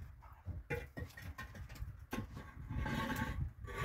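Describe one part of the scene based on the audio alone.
A concrete block scrapes and knocks as it is set onto a wall.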